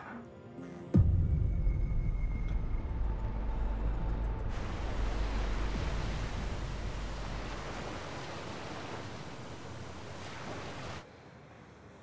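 Waves crash and roar against a rocky shore.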